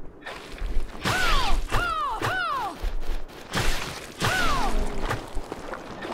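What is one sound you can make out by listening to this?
A sword slashes and strikes an enemy.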